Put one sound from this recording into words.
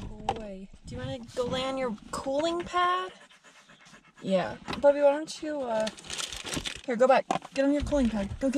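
A young woman talks calmly nearby.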